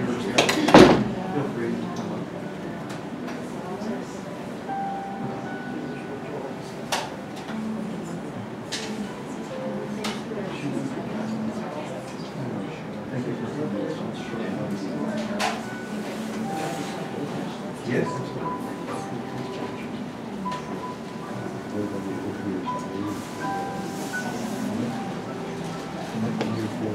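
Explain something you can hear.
A crowd of adult men and women murmurs and talks quietly nearby.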